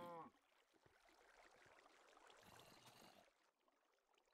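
Water splashes and flows.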